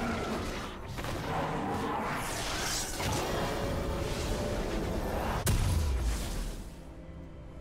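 Magic spell effects whoosh and crackle.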